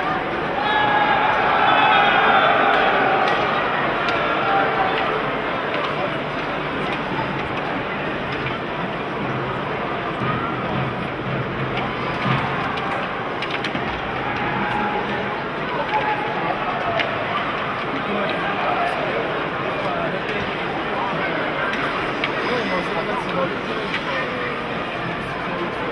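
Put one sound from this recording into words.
A crowd cheers and chatters in a large echoing arena.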